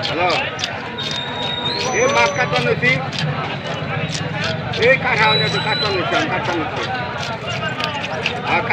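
A crowd chatters and calls out all around, outdoors.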